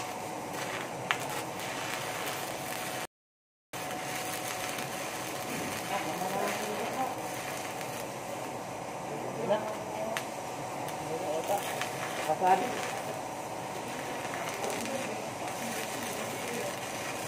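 A stick welding arc crackles and sizzles.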